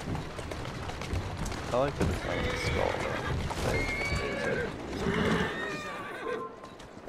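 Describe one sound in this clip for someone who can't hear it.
Carriage wheels rumble over a road.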